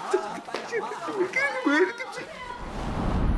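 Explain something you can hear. A man speaks in a choked, tearful voice close by.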